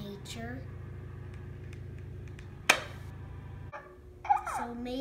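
A boy taps a plastic toy egg with his fingers.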